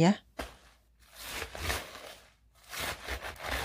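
A knife cuts through crisp cabbage leaves on a wooden board.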